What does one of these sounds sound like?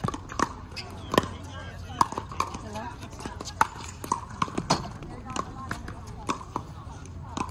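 Paddles pop sharply against a plastic ball, again and again.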